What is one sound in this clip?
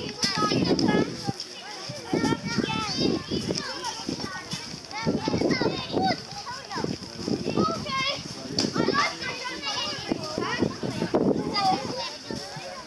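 A young girl talks loudly and excitedly near the microphone.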